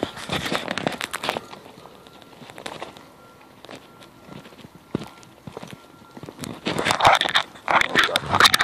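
Footsteps scuff along a paved path outdoors.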